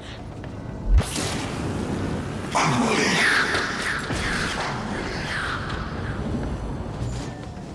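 A spaceship engine roars as the ship speeds forward.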